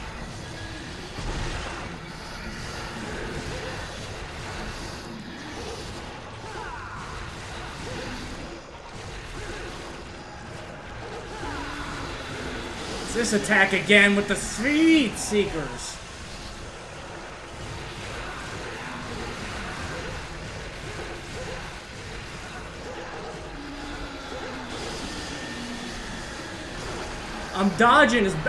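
Swords clash and slash against a monster.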